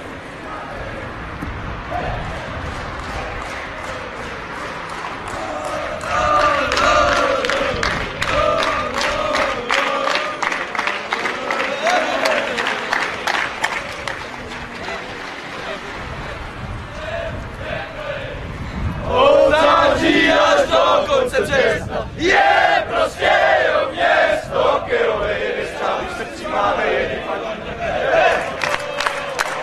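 Many footsteps shuffle on pavement.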